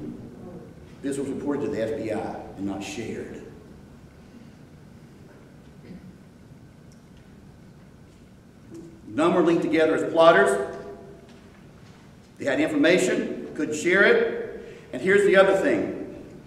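An older man speaks calmly into a microphone in a room with a slight echo, pausing between phrases.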